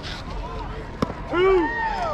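A softball pops sharply into a catcher's glove.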